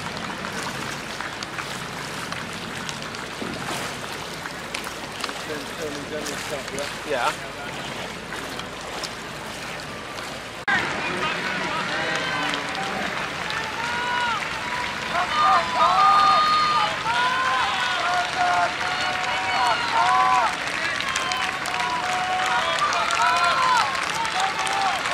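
Oars splash and dip in the water.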